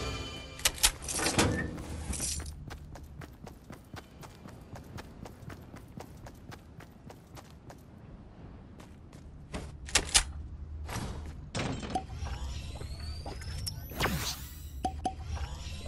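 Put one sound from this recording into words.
A game character's footsteps tap quickly on hard floors.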